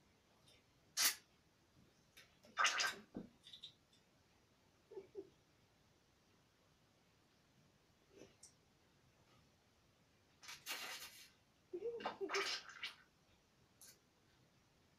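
A straw clinks and scrapes against a glass bowl.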